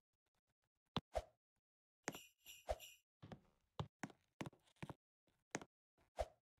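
A game character lands jumps with short thuds.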